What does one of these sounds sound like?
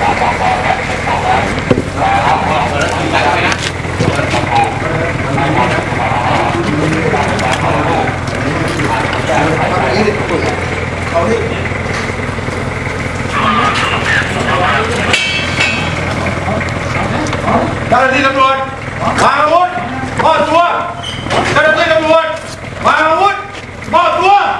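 Several men talk and call out in low, tense voices outdoors.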